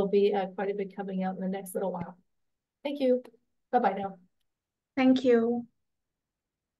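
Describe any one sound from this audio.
A woman speaks calmly and warmly over an online call, in short bursts.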